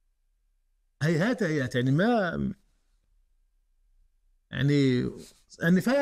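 A middle-aged man speaks calmly and clearly into a close microphone, pausing between phrases.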